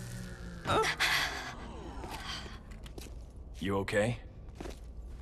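A man speaks quietly and calmly.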